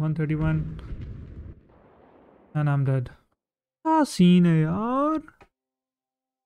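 A young man speaks with animation into a microphone, his voice rising and falling.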